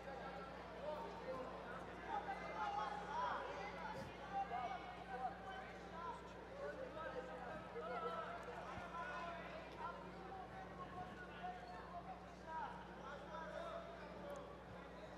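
Men shout instructions loudly in a large echoing hall.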